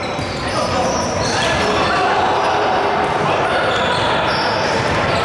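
Many voices chatter in a large echoing gym.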